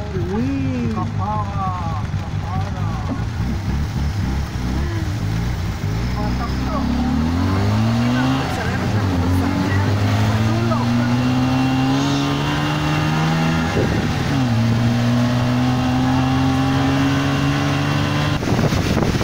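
A small engine putters and revs up and down.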